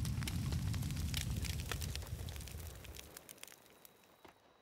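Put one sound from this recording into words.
A fire roars and crackles loudly, then dies away.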